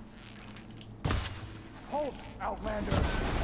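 A bowstring is drawn back and creaks.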